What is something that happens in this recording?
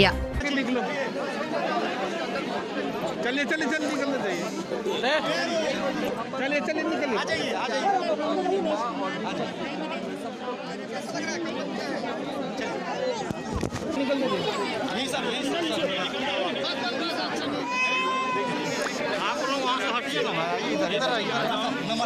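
A crowd of men and women talk and call out over one another close by.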